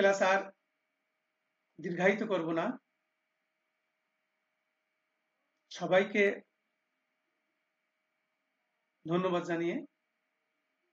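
A man speaks calmly in short phrases through an online call, with long pauses.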